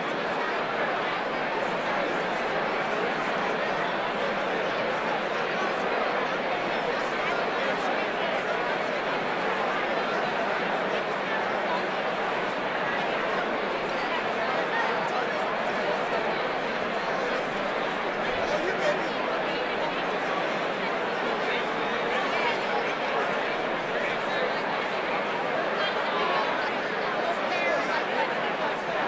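A large crowd chatters loudly in a big echoing hall.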